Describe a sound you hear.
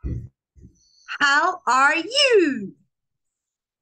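A young woman speaks with animation over an online call.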